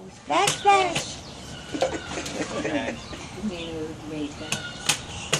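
A baby squeals and babbles happily close by.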